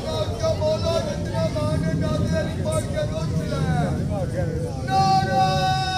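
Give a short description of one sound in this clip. A man chants loudly into a microphone, heard through loudspeakers.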